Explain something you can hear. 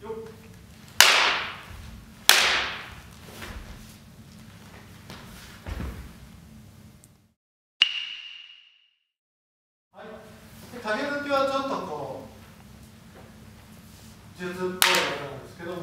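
Wooden swords clack together sharply in a large echoing hall.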